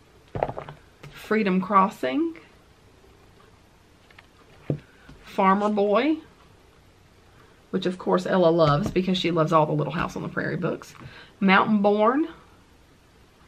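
A woman talks calmly and closely into a microphone, in short bursts with pauses.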